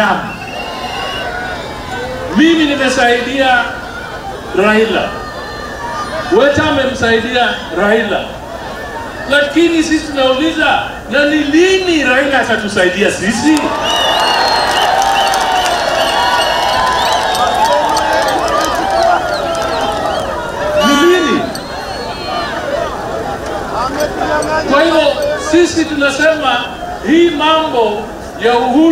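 A man speaks loudly through a loudspeaker to a crowd outdoors.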